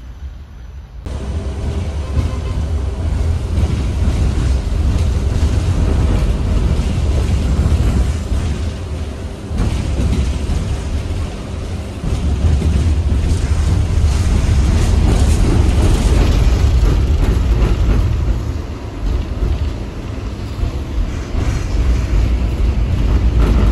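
A tram rumbles and hums steadily from inside as it rides along.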